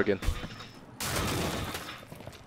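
A wooden barricade is smashed apart.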